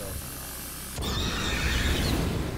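A flamethrower roars as it sprays fire.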